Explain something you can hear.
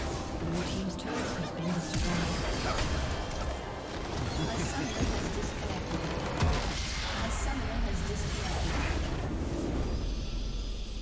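Game spell effects crackle and blast in a busy battle.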